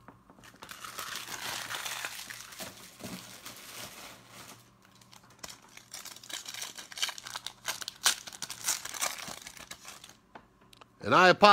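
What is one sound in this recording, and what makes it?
Foil wrappers crinkle and rustle as card packs are handled and torn open.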